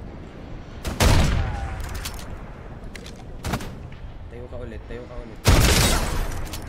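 A sniper rifle fires loud, booming shots.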